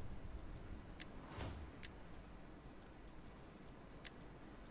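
Short interface clicks sound as game menus open.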